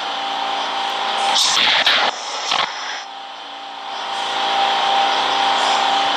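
A subway train's motor hums steadily.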